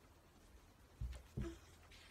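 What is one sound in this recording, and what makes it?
A book is handled with soft thumps.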